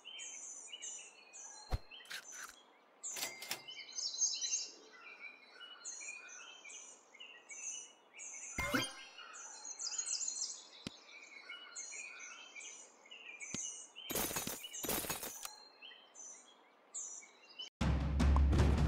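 Short cartoonish game sound effects chirp and pop.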